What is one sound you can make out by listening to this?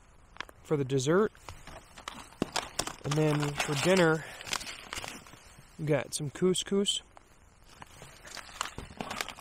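Foil packets crinkle and rustle close by.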